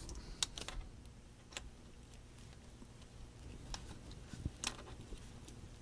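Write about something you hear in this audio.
A knob on an electronic device clicks as it is turned.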